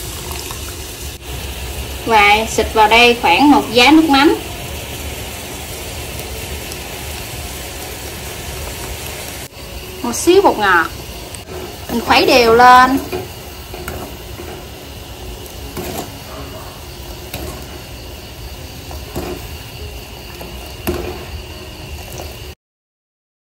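Syrup bubbles and boils steadily in a pan.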